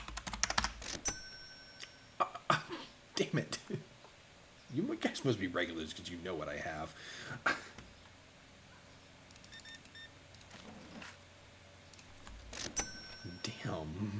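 A cash register beeps.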